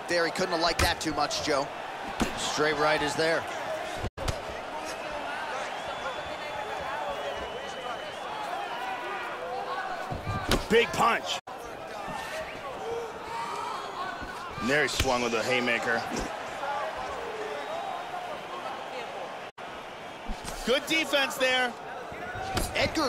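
Punches and kicks land with dull thuds.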